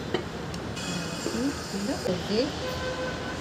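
Water pours into a glass jar.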